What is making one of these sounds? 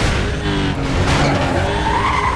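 Metal scrapes and grinds as a car brushes against a wall.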